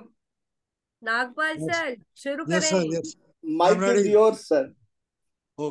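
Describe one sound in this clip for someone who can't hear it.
A young woman talks and laughs over an online call.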